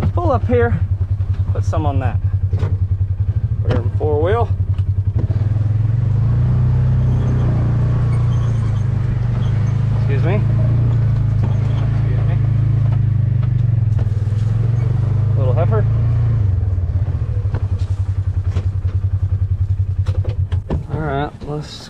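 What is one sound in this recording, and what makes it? A vehicle engine idles with a low, steady rumble.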